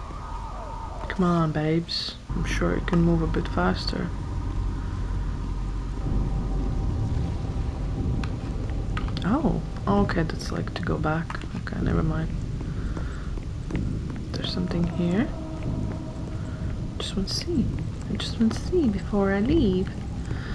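A young woman talks with animation into a microphone, close by.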